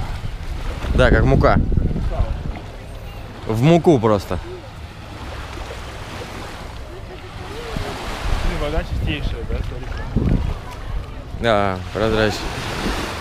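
A young man speaks briefly close by.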